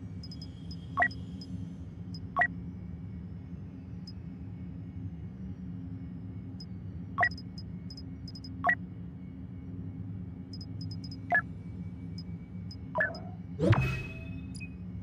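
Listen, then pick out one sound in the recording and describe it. Short electronic menu blips sound now and then.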